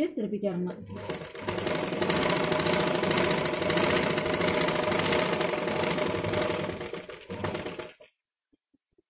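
A sewing machine runs with a steady, fast whirring hum.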